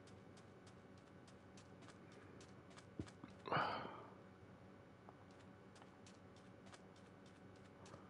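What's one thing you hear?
Footsteps crunch on sand at a steady walking pace.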